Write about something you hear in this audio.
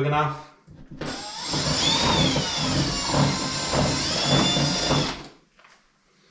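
A cordless drill whirs loudly, screwing into a wall.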